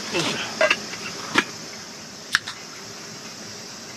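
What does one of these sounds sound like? A can pops open with a sharp hiss.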